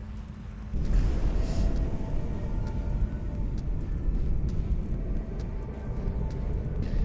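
A deep explosion booms and then rumbles on.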